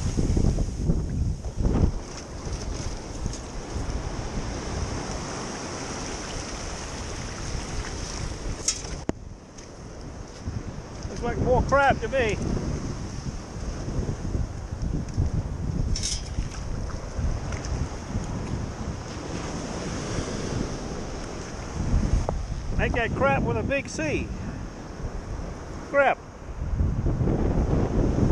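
Shallow surf washes and fizzes over sand.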